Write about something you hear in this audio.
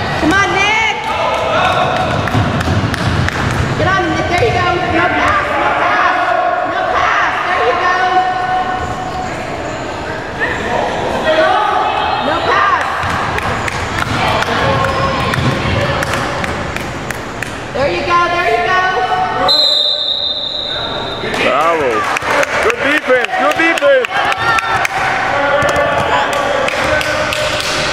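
Children and adults shout and cheer loudly in a large echoing hall.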